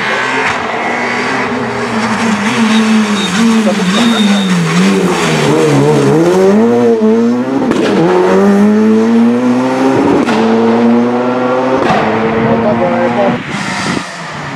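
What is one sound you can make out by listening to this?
A rally car engine revs hard and changes gear as the car speeds past.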